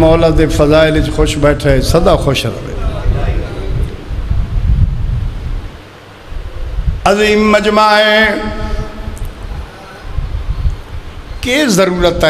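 A man chants loudly in a sustained, wailing voice through a microphone, in an echoing hall.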